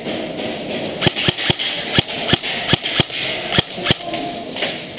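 A paintball marker fires a quick burst of sharp popping shots in a large echoing hall.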